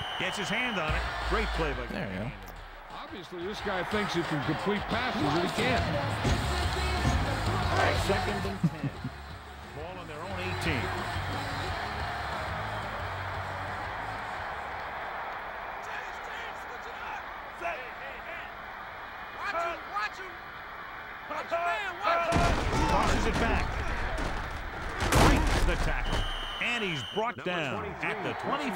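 A stadium crowd cheers and roars steadily.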